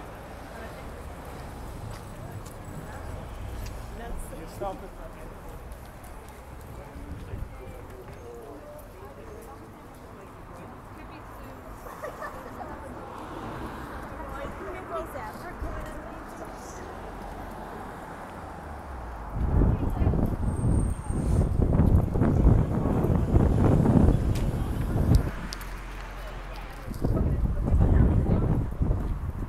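Traffic hums steadily along a street.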